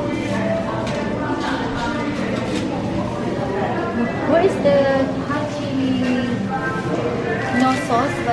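People chatter in the background.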